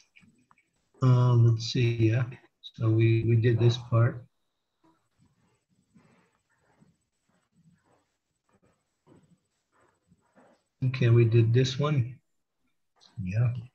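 A man reads aloud over an online call, in short bursts with pauses.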